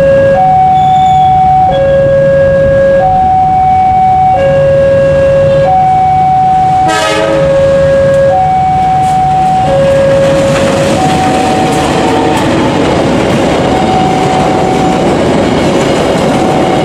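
A diesel locomotive rumbles as it approaches and passes close by.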